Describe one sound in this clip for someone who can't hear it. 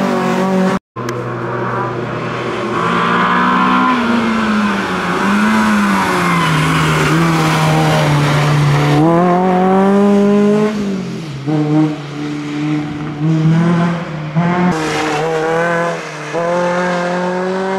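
A rally car engine revs hard, rising and falling as the car changes gear through corners.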